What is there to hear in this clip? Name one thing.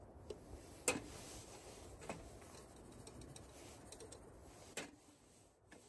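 Metal cups clink as they are set down on a metal grate.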